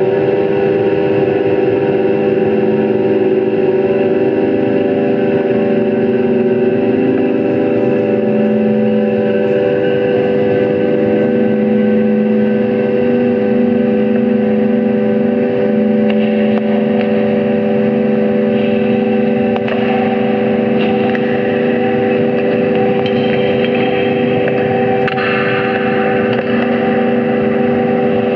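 Electronic synthesizer tones drone and pulse steadily, with shifting pitches.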